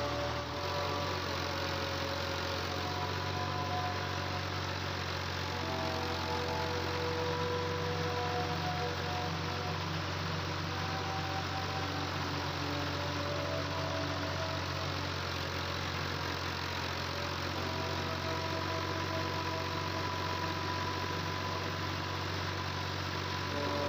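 A tractor engine runs with a steady, deep rumble.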